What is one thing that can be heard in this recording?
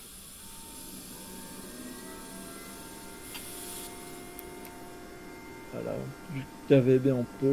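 An electric train motor hums with a slowly rising whine.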